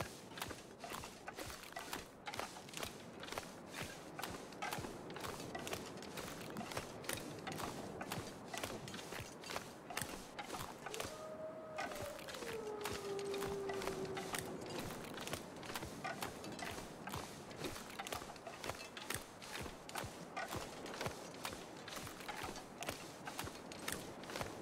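Footsteps crunch steadily on ice.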